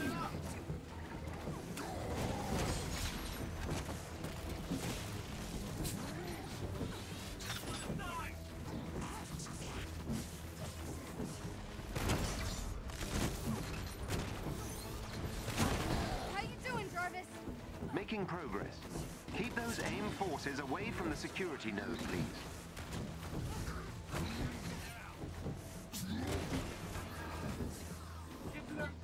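A young person talks animatedly close to a microphone.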